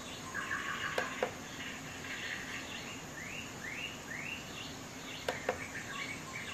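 Small plastic buttons click as they are pressed.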